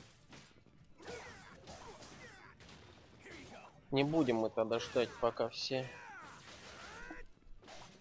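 Metal blades clash and strike sharply.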